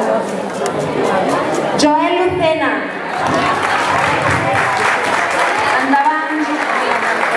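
A crowd of people applauds in a room.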